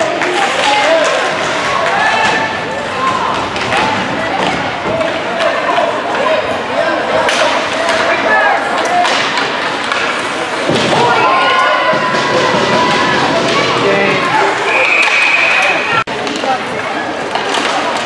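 Spectators shout and cheer in an echoing rink.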